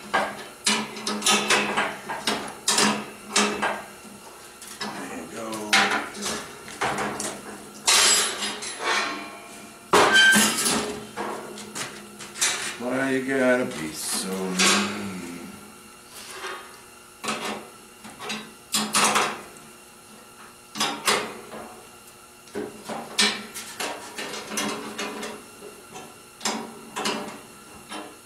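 Metal pieces clank and tap sharply against a metal workbench, close by.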